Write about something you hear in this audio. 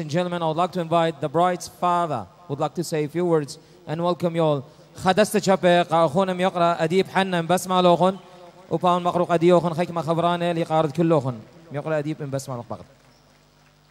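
A man sings with feeling through a microphone and loudspeakers in an echoing hall.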